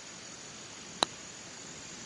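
A golf club taps a ball with a short, sharp click.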